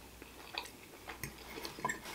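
A fork scrapes against a plate.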